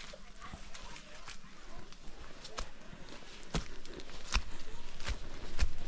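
Footsteps crunch on a dry leafy path.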